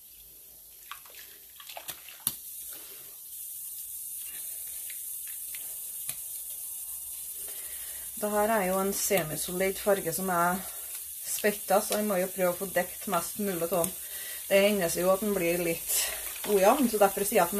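Water splashes and drips from wet yarn lifted out of a pot.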